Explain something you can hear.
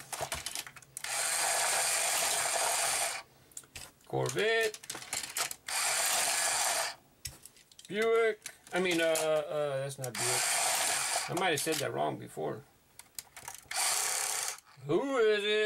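A small toy motor whirs in repeated bursts.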